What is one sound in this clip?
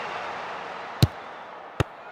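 A ball is kicked with a sharp thump.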